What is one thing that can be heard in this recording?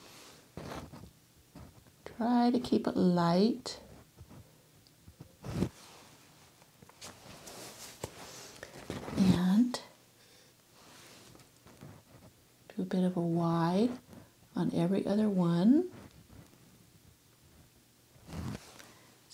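A paintbrush dabs and strokes softly on a canvas.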